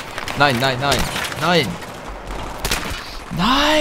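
A rifle fires sharp gunshots.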